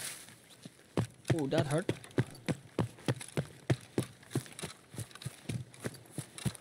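Footsteps crunch steadily through gravel and grass.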